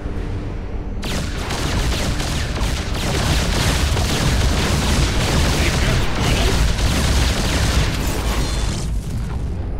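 Laser guns fire in rapid bursts amid loud battle noise.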